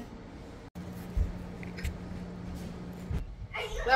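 A tortilla chip scrapes and crunches through chunky salsa in a bowl.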